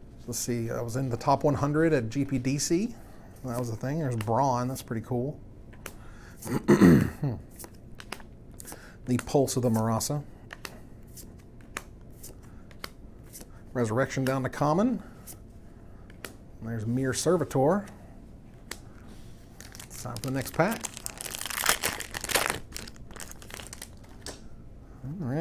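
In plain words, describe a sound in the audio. Trading cards slide and tap against each other in a hand.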